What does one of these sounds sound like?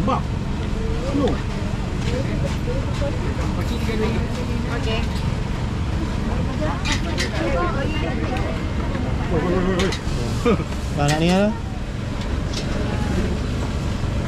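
A busy crowd murmurs and chatters all around outdoors.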